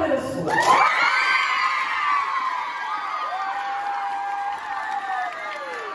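A crowd of young people cheers and screams loudly in a large hall.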